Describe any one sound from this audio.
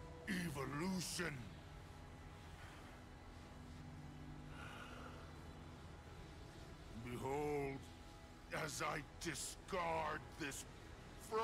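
A man speaks in a deep, menacing voice, close to the microphone.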